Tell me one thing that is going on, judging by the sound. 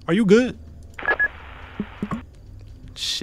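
Radio static hisses briefly.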